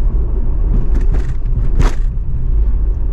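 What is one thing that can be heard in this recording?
An oncoming car passes by with a brief whoosh.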